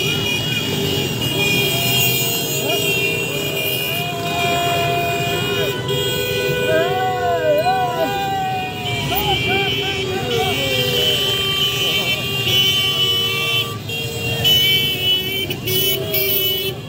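Motorcycle engines rumble and rev nearby.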